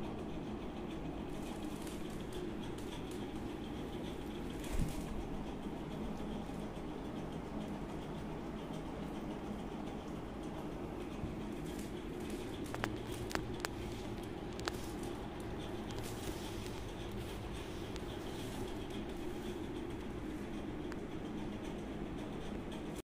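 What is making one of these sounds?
A large dog pants with its mouth open.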